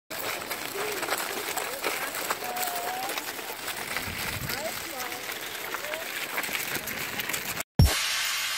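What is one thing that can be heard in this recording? Stroller wheels crunch over gravel.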